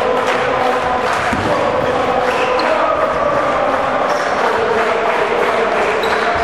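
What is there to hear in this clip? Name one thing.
Sneakers squeak on a hard indoor floor.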